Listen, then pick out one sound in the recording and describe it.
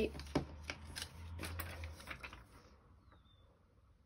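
A plastic sheet crinkles softly as it is picked up and handled.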